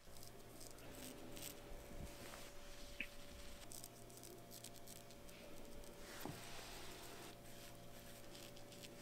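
A straight razor scrapes through stubble with close, crisp rasps.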